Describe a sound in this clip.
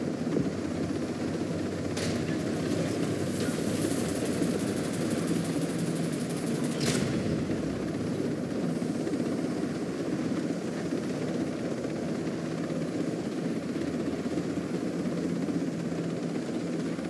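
A helicopter's rotor thumps and its engine drones steadily.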